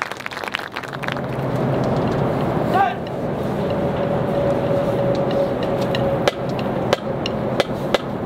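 A marching band plays brass and winds outdoors.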